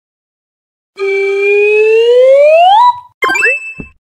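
A rising electronic tone swoops up.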